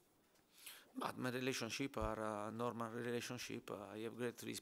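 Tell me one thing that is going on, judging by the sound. A middle-aged man speaks calmly and close into a microphone.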